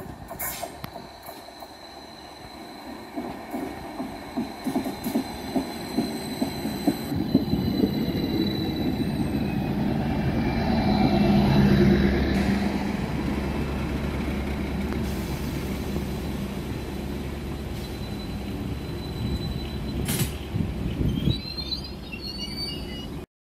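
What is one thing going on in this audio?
A train approaches and rumbles loudly past close by.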